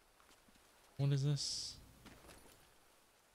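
A backpack is opened with a rustle.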